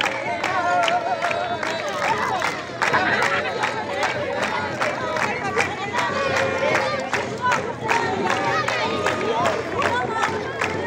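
A crowd of children and adults chatters and shouts outdoors.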